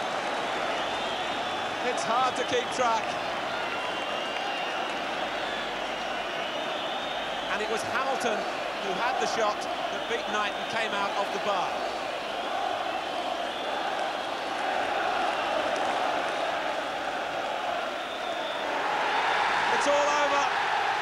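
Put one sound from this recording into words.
A large outdoor stadium crowd roars and chants.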